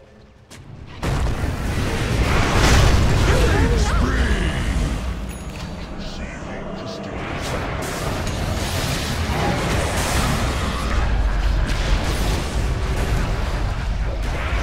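Spells crackle and boom in a loud fight.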